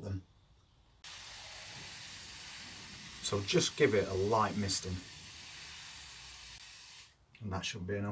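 Water sprinkles steadily from a watering can onto soil.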